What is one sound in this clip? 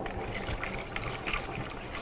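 Water pours into a cup.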